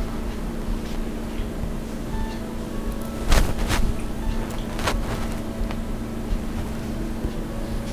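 Thread rustles as it is pulled through beads.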